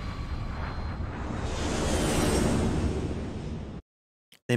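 A craft whooshes past.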